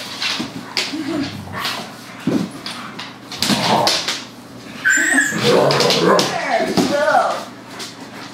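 Dogs growl and snarl playfully close by.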